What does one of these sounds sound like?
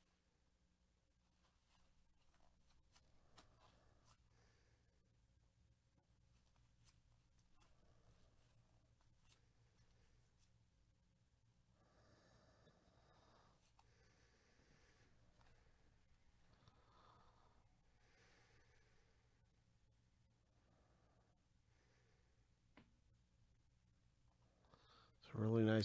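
Trading cards rustle and click softly as they are flipped one by one.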